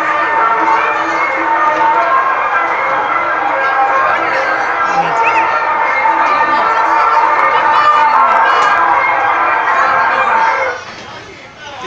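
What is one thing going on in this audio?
Cheerful carousel music plays steadily, then stops abruptly.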